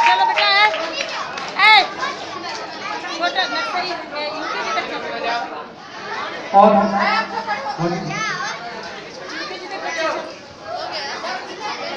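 A crowd of men and boys chatters loudly around them.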